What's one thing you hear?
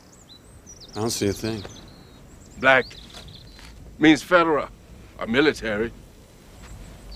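An elderly man speaks calmly and warmly nearby.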